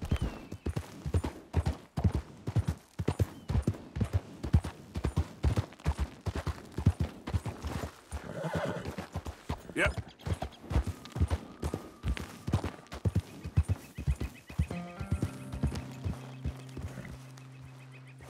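Horse hooves clop steadily on rocky ground.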